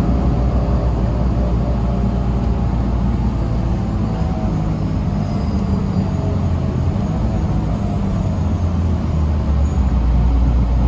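Tyres roll along the road and then stop.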